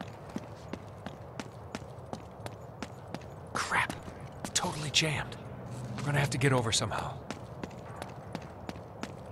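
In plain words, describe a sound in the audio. Footsteps run quickly on hard concrete.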